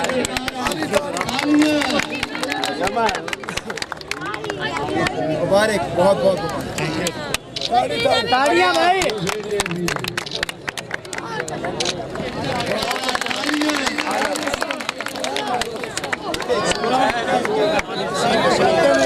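Men clap their hands.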